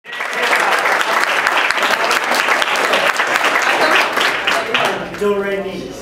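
An audience claps and laughs.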